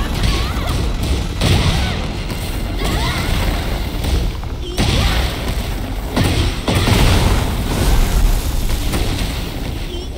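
Heavy punches and kicks land with loud thuds and cracks.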